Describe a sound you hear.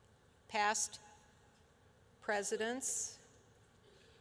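An elderly woman speaks calmly and clearly into a nearby microphone.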